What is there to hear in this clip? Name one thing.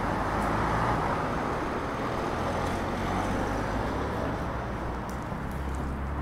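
A car drives past on the street.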